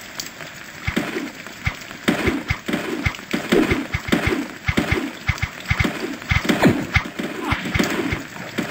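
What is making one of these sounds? Gunshots and sharp blows crack in quick bursts.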